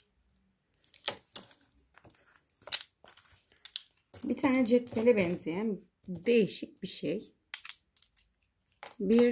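A small plastic keychain clicks and rattles as it is handled.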